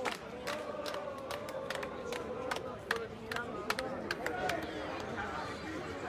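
A crowd claps in quick bursts.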